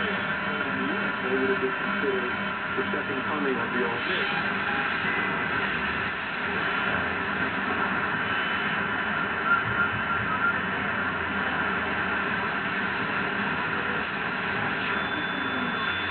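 A radio receiver hisses with crackling static and faint warbling tones.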